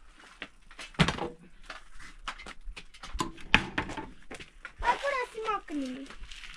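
A metal shovel scrapes and clinks against the ground.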